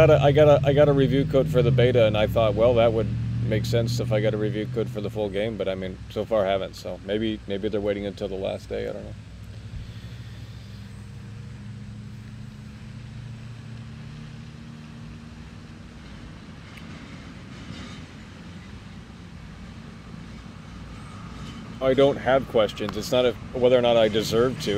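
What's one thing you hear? A young man talks calmly into a microphone, with pauses.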